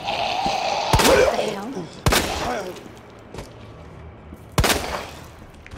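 A pistol fires several loud shots that echo briefly.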